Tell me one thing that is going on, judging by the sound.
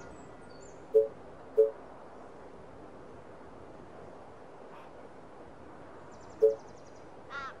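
Short interface clicks sound a few times.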